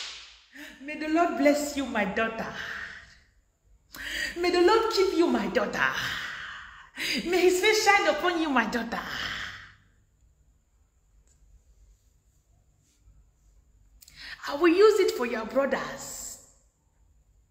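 A young woman talks animatedly close by, in short bursts.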